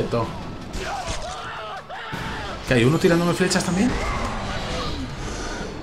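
Chained blades whoosh and strike a creature.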